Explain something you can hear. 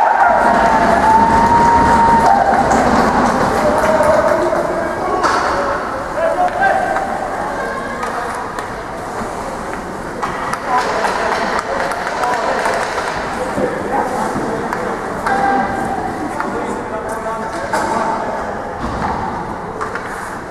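Spectators chatter in a large echoing hall.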